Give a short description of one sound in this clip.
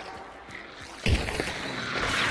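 Wooden planks splinter and crack apart.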